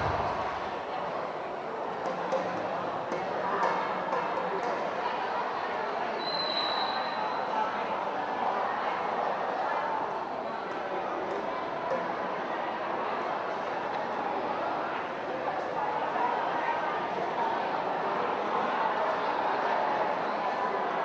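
A young woman speaks over a loudspeaker.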